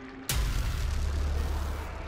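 Footsteps splash across a wet floor.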